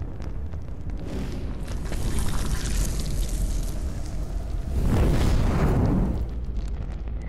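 A magical energy blast surges and roars.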